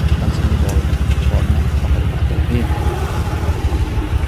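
Men and women talk nearby outdoors.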